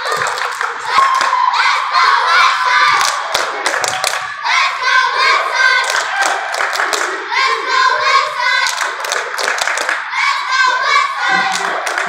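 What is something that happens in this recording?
Young girls chant loudly together.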